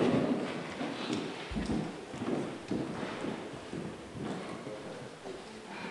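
Footsteps move across a wooden floor.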